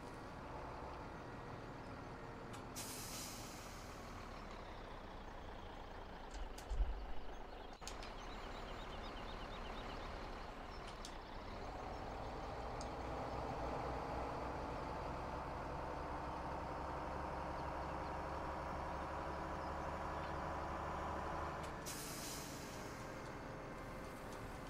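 A heavy truck engine rumbles steadily and rises in pitch as it speeds up.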